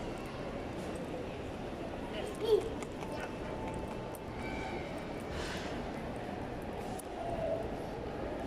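Distant voices murmur and echo in a large hall.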